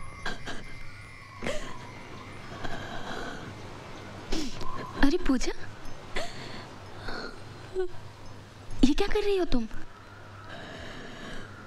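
A young woman sobs and weeps softly, close by.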